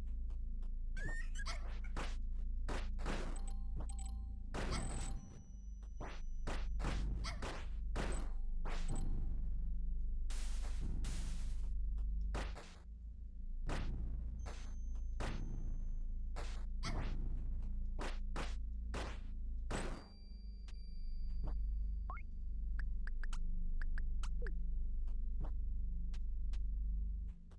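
Sharp video game slashing and blast effects ring out in quick bursts.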